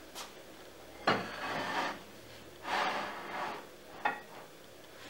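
Ceramic plates clink as a teapot is set on a shelf.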